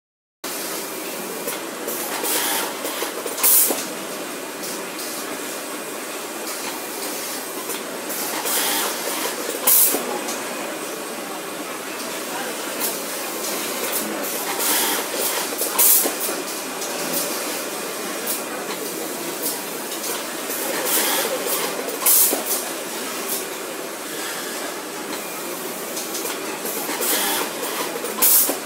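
An automatic sewing machine hums and whirs steadily.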